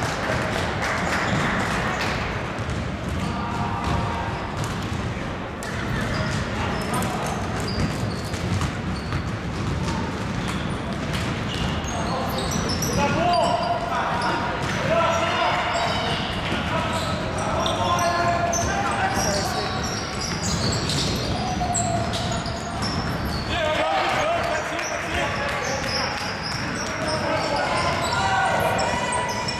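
Young men shout and call out across the hall.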